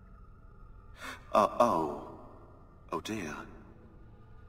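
A young man mutters in dismay, close by.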